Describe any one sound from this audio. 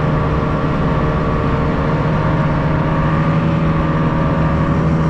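A snowmobile engine drones steadily up close.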